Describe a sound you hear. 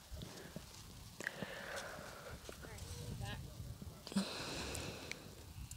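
A horse's hooves thud softly on soft ground.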